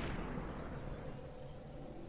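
A gunshot cracks.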